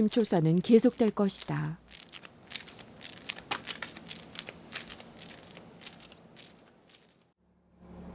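Footsteps scuff on concrete.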